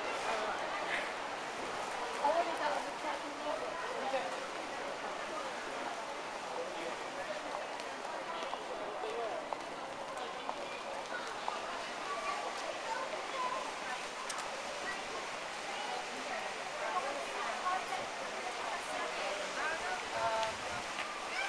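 Footsteps of several people walk on a hard tiled floor.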